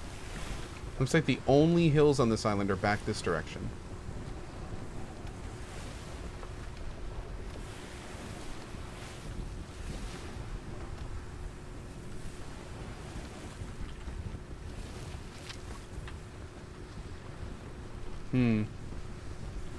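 A man speaks into a close microphone, casually and with animation.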